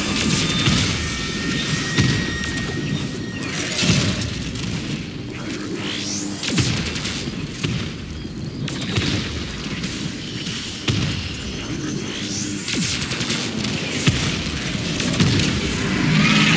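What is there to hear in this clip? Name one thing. Swords swish and strike in a fast fight.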